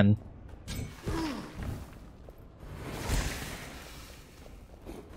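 A magic blast bursts with a whooshing rush.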